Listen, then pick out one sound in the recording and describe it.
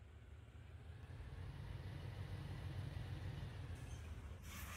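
A diesel locomotive engine rumbles low and grows louder as it draws near.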